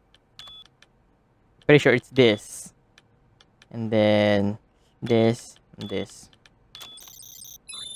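Buttons on a keypad beep as they are pressed.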